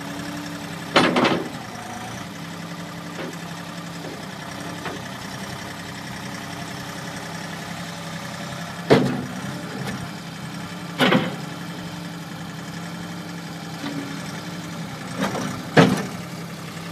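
Metal clanks sharply as a loader bucket moves.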